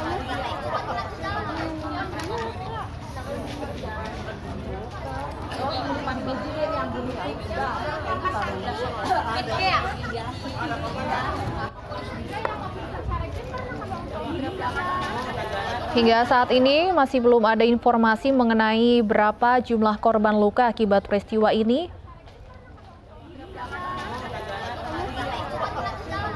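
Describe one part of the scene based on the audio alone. A crowd of people talks and murmurs outdoors.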